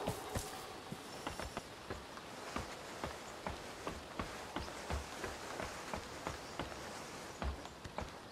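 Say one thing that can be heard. Boots clank on the wooden rungs of a ladder.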